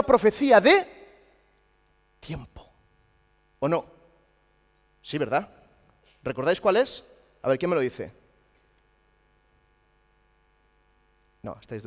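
A middle-aged man speaks with animation through a microphone, in short bursts with pauses, in a large echoing hall.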